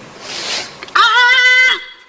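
A woman sings a long wavering note into a microphone.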